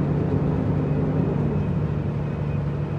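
A truck's engine drops in pitch after a gear change.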